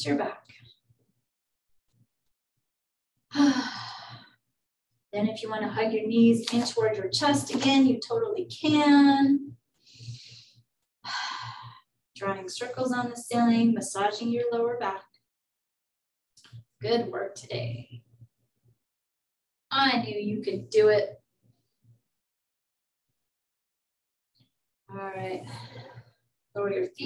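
A woman speaks calmly through a microphone, giving instructions in pauses.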